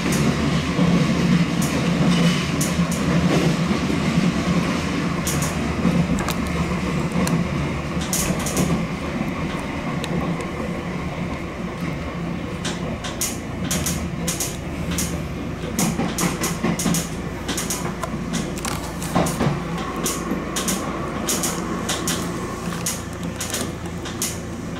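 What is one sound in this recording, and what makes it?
A train's motor hums steadily as it rolls along.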